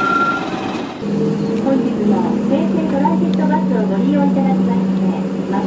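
A bus engine hums steadily from inside as the bus pulls away.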